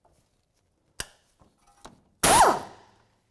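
A metal tool clanks against car parts.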